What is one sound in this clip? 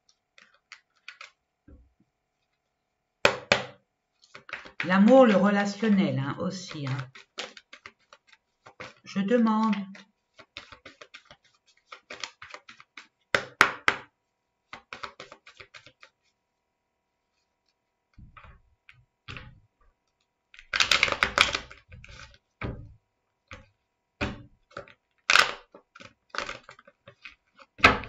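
Cards shuffle and flick together close by.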